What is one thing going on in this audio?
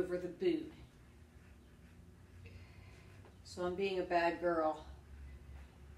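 A middle-aged woman speaks briefly, close by.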